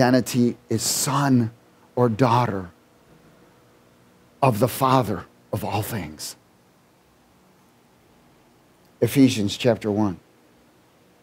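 A man speaks with animation in a room with some echo.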